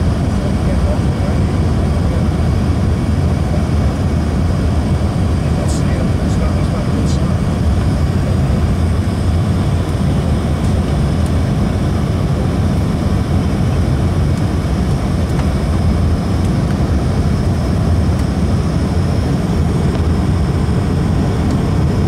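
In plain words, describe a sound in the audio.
A jet plane's engines roar steadily, heard from inside the cabin.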